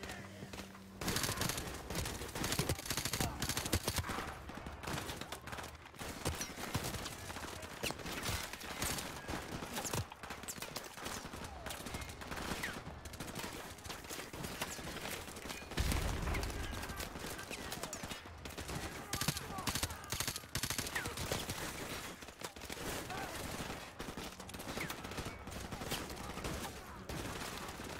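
Rapid gunshots crack and echo.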